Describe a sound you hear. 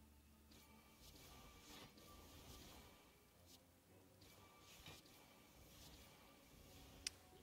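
Game effects whoosh and thud as cards are played.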